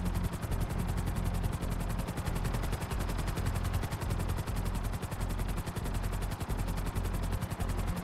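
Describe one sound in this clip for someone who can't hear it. A helicopter's rotor blades thump rapidly and steadily.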